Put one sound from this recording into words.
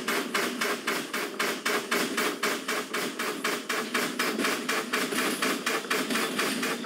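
A steam locomotive chuffs in a fast, steady rhythm.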